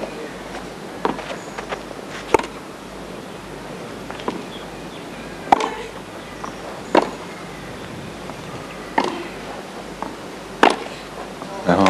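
A tennis ball is struck back and forth with crisp pops of a racket.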